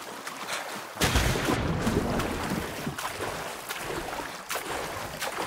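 Water splashes and churns as someone swims.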